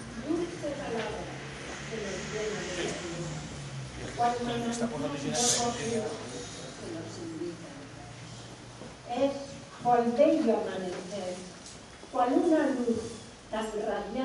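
An elderly woman reads out calmly through a microphone.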